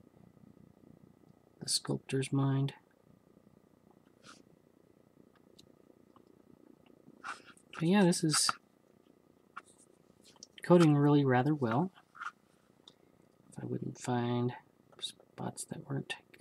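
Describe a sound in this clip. A small paintbrush dabs and scrapes softly.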